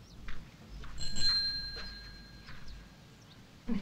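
A bicycle bell rings.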